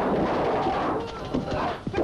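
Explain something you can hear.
An elderly man laughs loudly.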